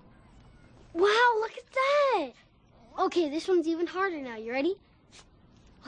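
A young boy speaks excitedly in a high voice.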